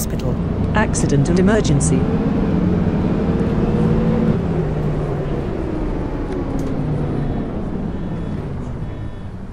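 A city bus diesel engine with an automatic gearbox winds down as the bus slows to a stop.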